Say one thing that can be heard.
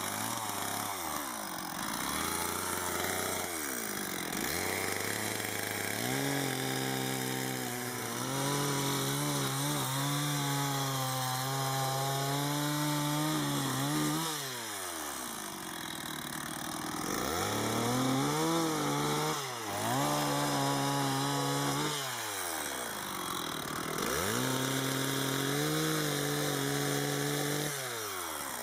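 A chainsaw engine revs up and down, roaring loudly as it cuts through wood.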